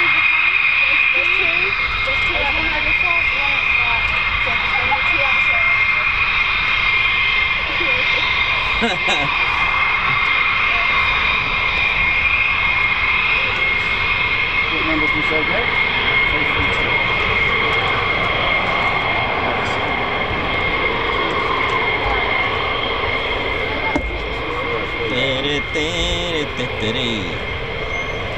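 Jet engines whine loudly and steadily close by.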